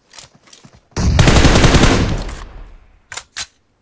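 A rifle shot rings out loudly and echoes away.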